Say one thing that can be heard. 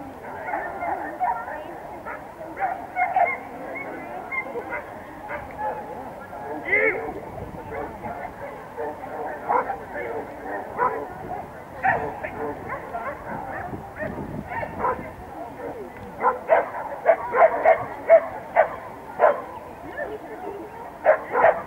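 A crowd chatters outdoors at a distance.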